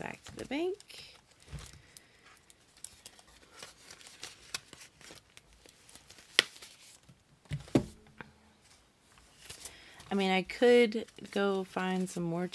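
Plastic binder pages crinkle and flap as they are turned.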